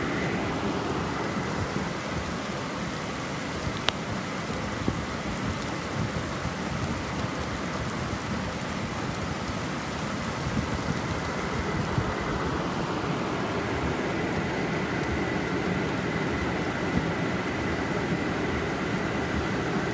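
Heavy rain pours down and drums on a car's roof and windows.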